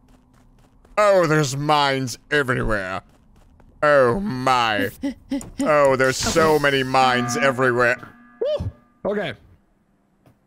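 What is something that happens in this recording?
A man talks with animation close to a microphone.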